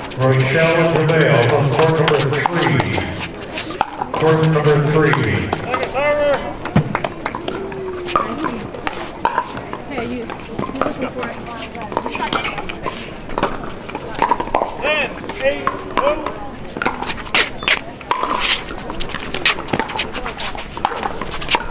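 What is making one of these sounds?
Paddles smack a plastic ball back and forth.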